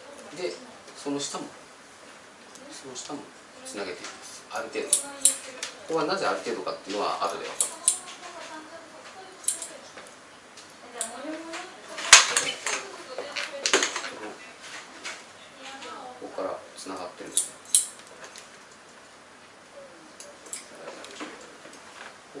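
Scissors snip through hair in short clicks.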